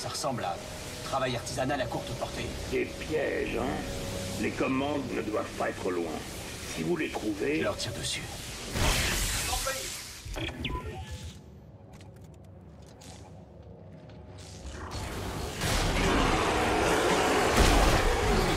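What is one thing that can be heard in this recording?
An electric beam crackles and hums.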